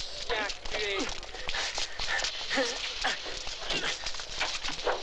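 Bodies scuffle and grapple.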